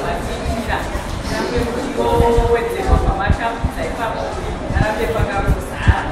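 A woman speaks loudly in an echoing room.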